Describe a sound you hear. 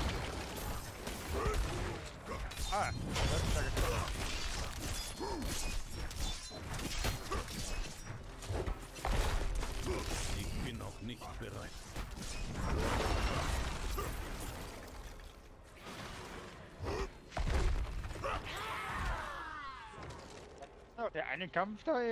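Game combat effects crash and whoosh with heavy impacts.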